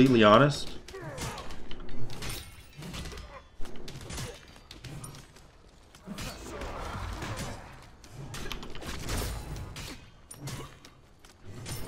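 Video game combat sounds clash and zap.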